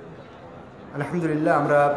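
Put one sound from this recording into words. A man speaks loudly through a microphone and loudspeaker.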